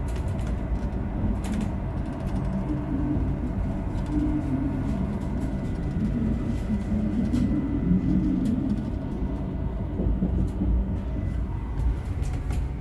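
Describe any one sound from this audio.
A train rumbles and hums steadily along the tracks.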